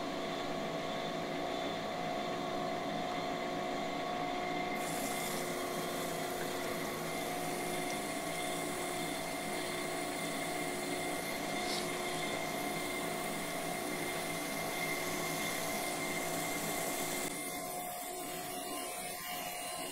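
A grinding machine hums steadily as a wheel grinds a metal shaft.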